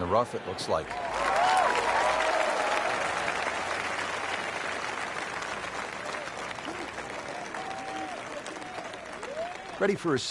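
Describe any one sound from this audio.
A crowd cheers loudly and slowly dies down.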